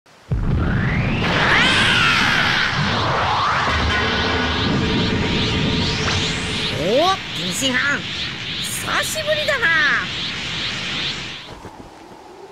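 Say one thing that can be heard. A crackling energy blast roars loudly and steadily.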